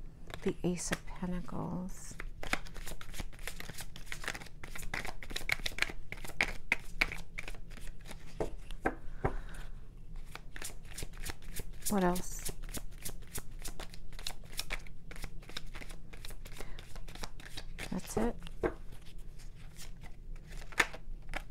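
Playing cards are shuffled by hand with quick, rapid riffling clicks.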